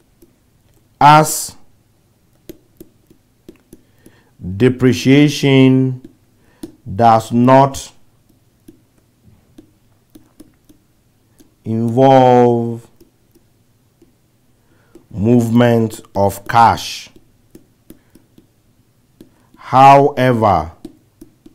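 A man speaks calmly in short phrases, close to a microphone.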